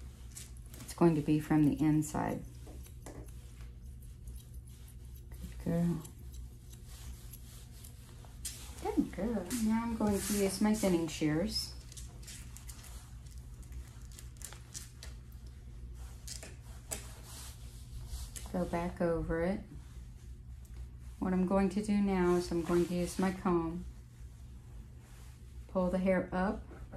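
A middle-aged woman talks calmly nearby.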